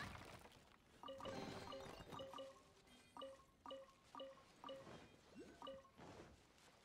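Soft electronic menu chimes blip one after another.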